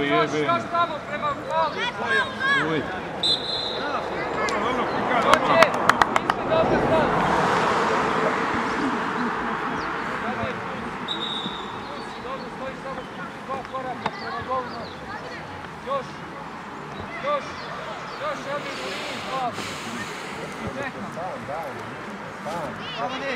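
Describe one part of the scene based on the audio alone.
Young players shout to each other across an open field, far off.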